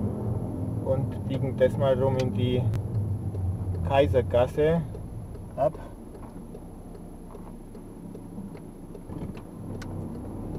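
A car engine hums low and steadily from inside the car.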